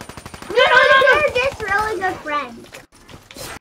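A young boy shouts excitedly close to a microphone.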